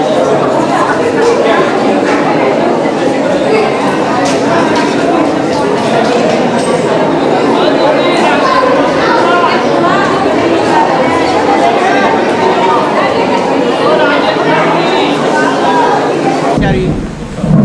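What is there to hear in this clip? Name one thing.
A crowd of people chatter and call out close by.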